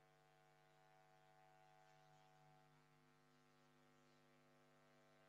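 A projector fan hums steadily.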